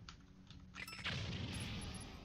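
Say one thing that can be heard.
A soft whoosh bursts out.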